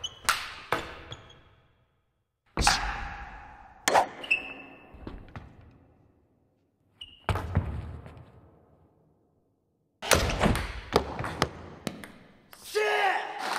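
A ping-pong ball clicks sharply off paddles and the table.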